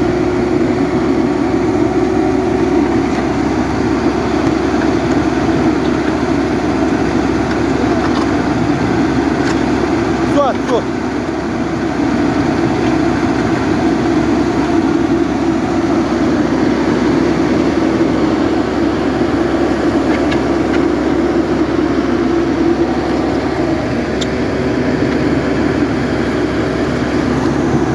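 A machine engine runs loudly and steadily close by.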